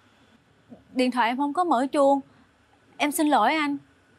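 A young woman speaks with tension nearby.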